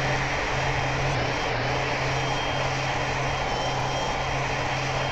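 A jet airliner's engines roar as it rolls along a runway.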